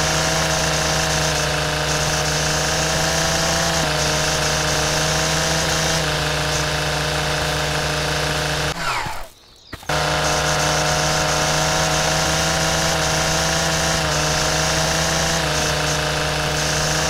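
A string trimmer engine whines steadily, briefly dropping out once.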